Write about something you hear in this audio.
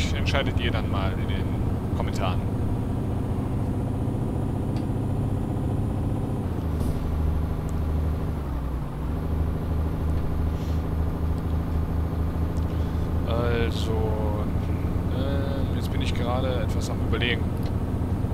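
A diesel truck engine drones while cruising on a highway.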